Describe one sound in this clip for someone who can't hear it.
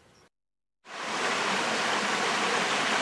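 Water rushes and burbles over stones in a shallow stream.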